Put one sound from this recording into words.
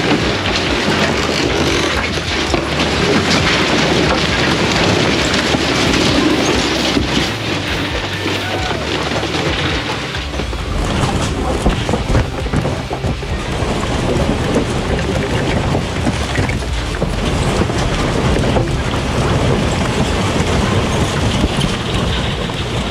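Violent wind roars and howls.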